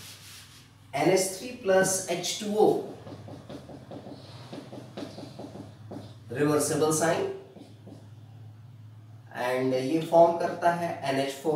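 A middle-aged man speaks calmly, explaining as if teaching.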